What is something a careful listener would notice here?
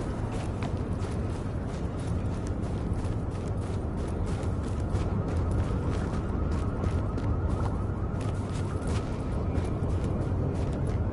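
Footsteps crunch through snow and then tread on a hard floor.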